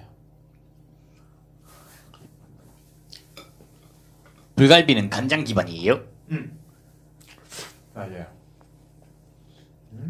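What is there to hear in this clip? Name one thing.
A man chews food noisily close to a microphone.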